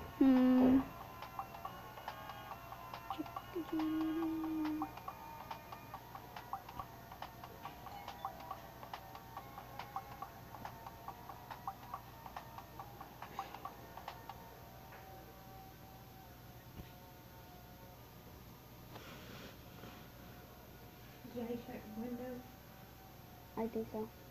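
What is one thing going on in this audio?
A young girl speaks softly, very close by.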